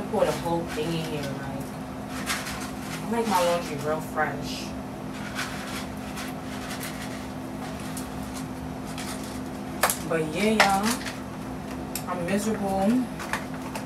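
Laundry is handled with soft knocks and rustles.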